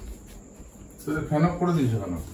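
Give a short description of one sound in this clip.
A middle-aged man speaks close by.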